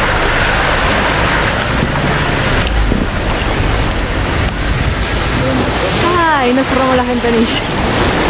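River water rushes and splashes steadily.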